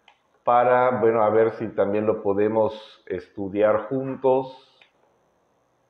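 A man speaks calmly and close through a clip-on microphone.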